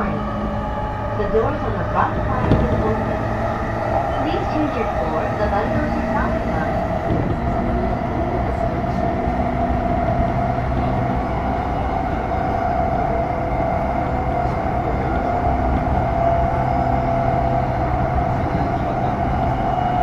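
An electric train motor hums steadily as the train runs.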